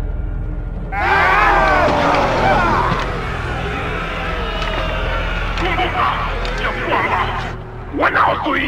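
A crowd of men shouts and roars angrily.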